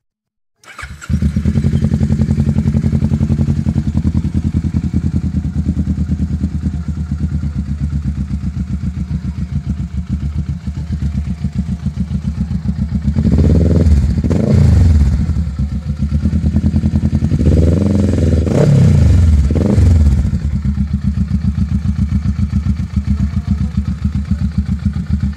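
A motorcycle engine idles close by with a steady, rapid putter.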